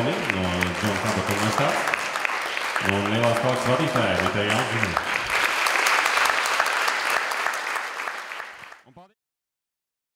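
An audience applauds in an echoing hall, then the clapping fades away.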